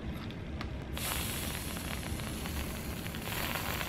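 Whipped cream hisses from a spray can.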